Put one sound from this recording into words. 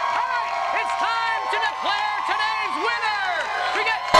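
A crowd cheers and whoops loudly.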